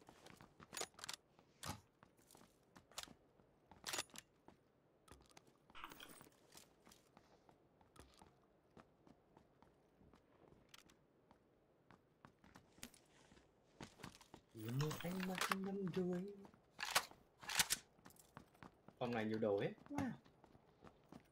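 Short game clicks and thuds sound from gear being picked up.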